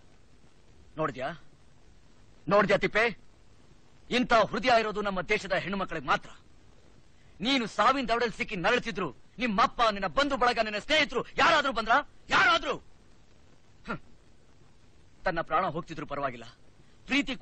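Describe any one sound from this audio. A man speaks forcefully and with agitation, close by.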